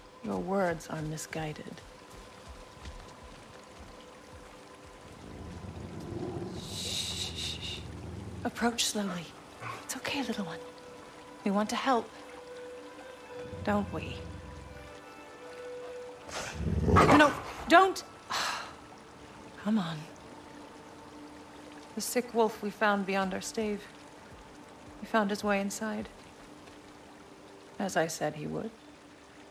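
A young woman speaks softly and urgently, close by.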